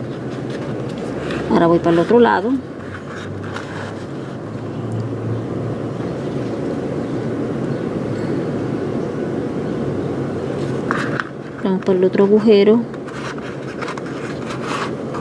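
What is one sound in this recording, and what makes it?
Paper ribbon rustles softly as it is handled.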